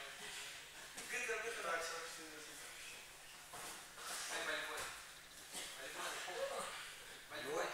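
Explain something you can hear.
Bodies thump and scuffle on a padded mat.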